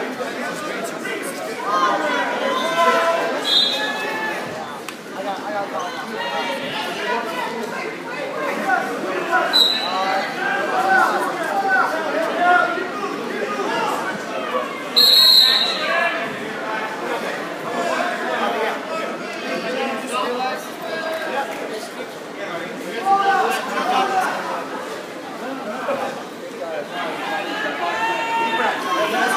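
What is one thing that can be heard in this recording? A crowd of people chatters throughout a large echoing gym.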